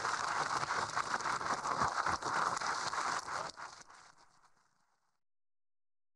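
A large crowd applauds in a big echoing hall, then the clapping fades.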